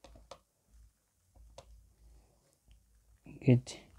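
Calculator buttons click softly under a finger.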